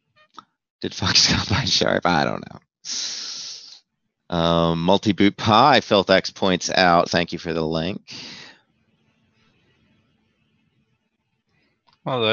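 A man talks with animation into a close microphone, heard through an online stream.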